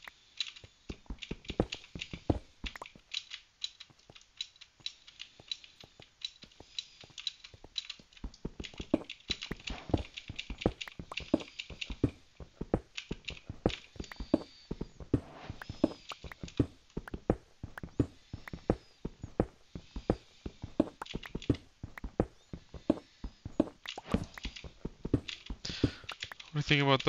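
A pickaxe chips at stone blocks.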